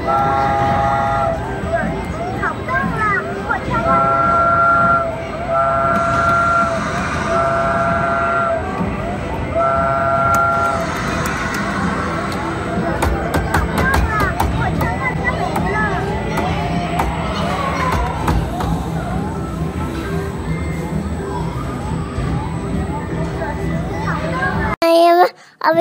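An arcade game plays bright electronic tunes and beeps.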